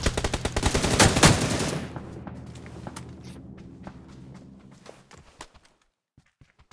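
A loud blast roars and slowly fades.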